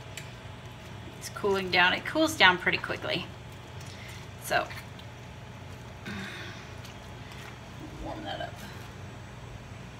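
Water drips and splashes as a wet cloth is wrung out in a sink.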